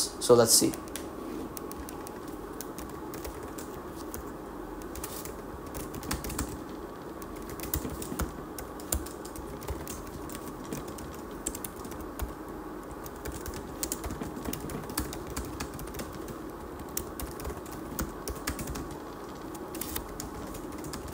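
Keyboard keys click softly.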